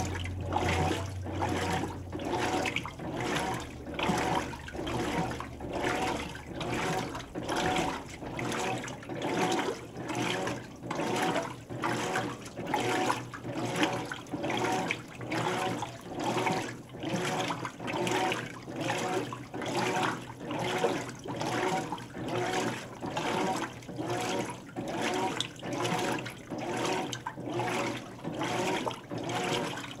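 Water sloshes and churns in rhythmic surges as a washing machine agitates.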